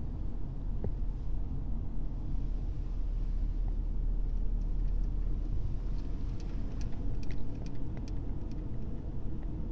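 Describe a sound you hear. Tyres roll on a wet road with a low rumble.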